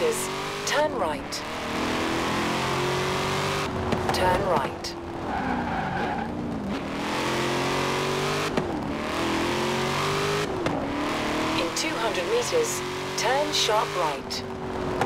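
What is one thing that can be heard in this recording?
Tyres screech briefly on tarmac in the corners.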